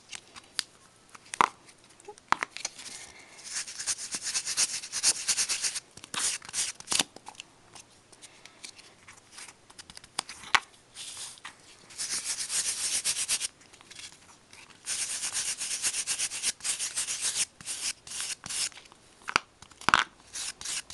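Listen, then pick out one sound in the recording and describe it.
Paper rustles and taps as it is handled.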